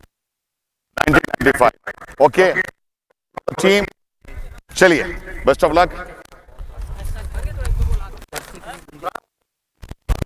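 A man speaks with animation through a microphone over a loudspeaker outdoors.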